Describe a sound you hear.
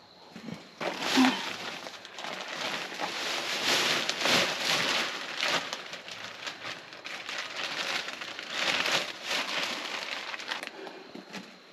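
Potting soil pours from a bag with a rushing hiss.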